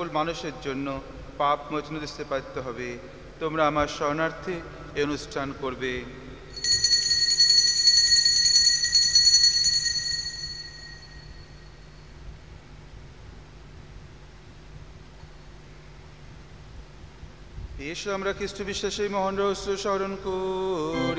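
A man chants through a microphone.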